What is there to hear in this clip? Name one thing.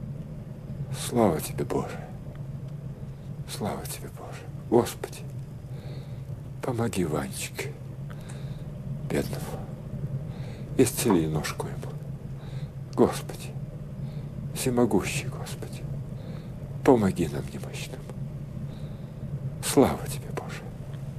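An elderly man speaks slowly and gravely, close by, with long pauses.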